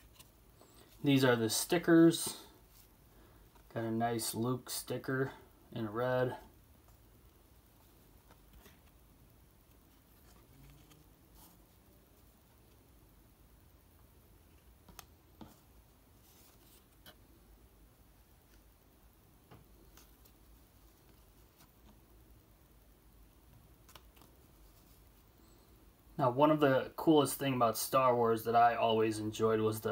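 Stiff cards slide and tap softly against each other close by.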